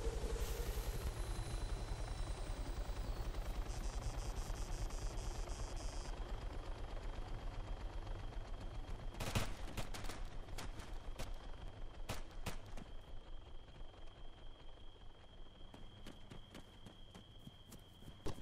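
A helicopter's rotor thumps nearby, then slowly fades.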